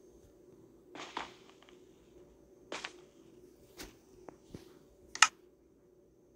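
A pickaxe strikes stone a few times.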